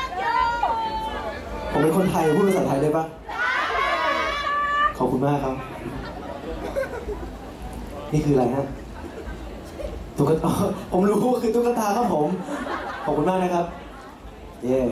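A young man speaks with animation through a microphone over loudspeakers.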